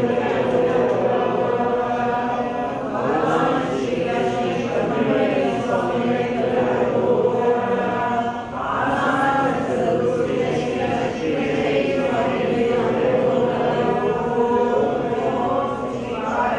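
A group of men and women sing a slow chant together in a large echoing hall.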